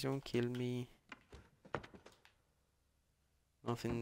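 A wooden drawer slides open.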